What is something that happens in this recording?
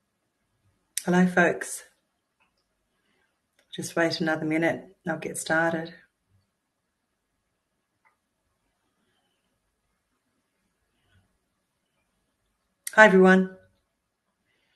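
A middle-aged woman speaks calmly in short bursts over an online call, close to the microphone.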